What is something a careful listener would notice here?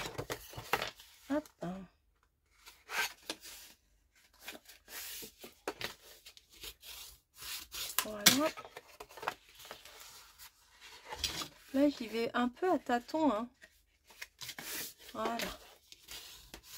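Stiff paper rustles and crinkles as hands fold and handle it.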